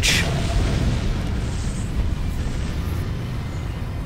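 Explosions boom and crackle in quick succession.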